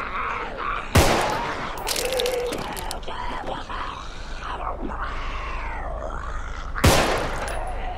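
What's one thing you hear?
A pistol fires two sharp shots.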